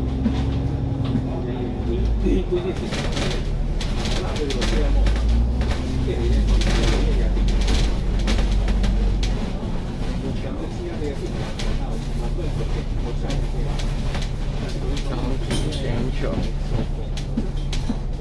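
A bus engine rumbles steadily while riding through city traffic.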